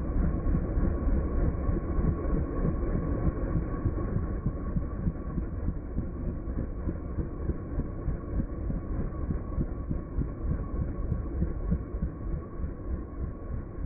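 A helicopter's rotor thumps steadily nearby, slowly growing quieter.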